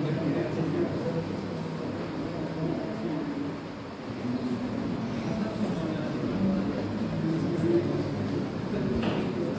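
A man lectures steadily at a moderate distance.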